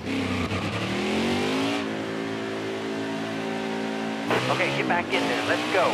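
A racing truck engine roars, rising in pitch and then holding steady.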